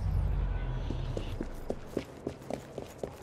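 Boots run on cobblestones.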